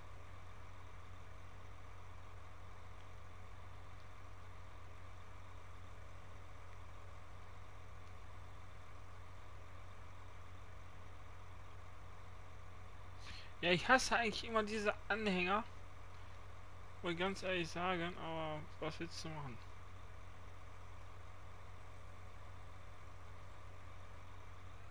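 A tractor engine idles with a steady low hum.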